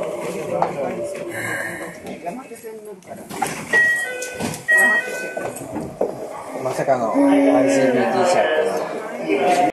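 A train hums quietly while standing at a platform.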